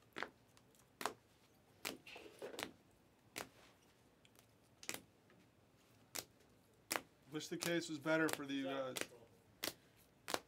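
Plastic card cases click and clack as they are handled.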